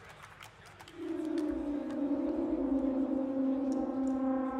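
An electric guitar rings out with a sustained chord.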